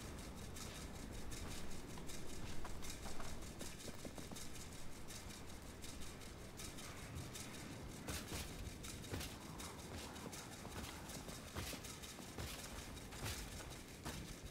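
Footsteps crunch over loose rubble.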